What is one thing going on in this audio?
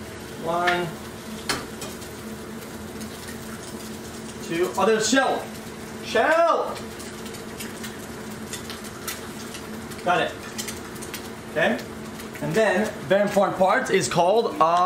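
Eggs sizzle in a frying pan.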